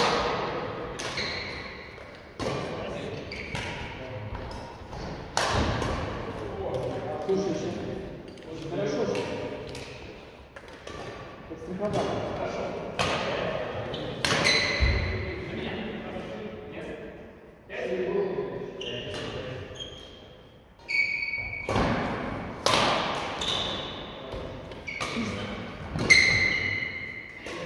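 Badminton rackets strike a shuttlecock again and again in a large echoing hall.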